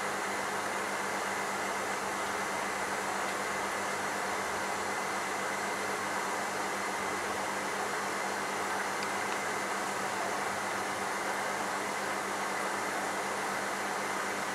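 Air bubbles from an aquarium filter fizz and gurgle steadily.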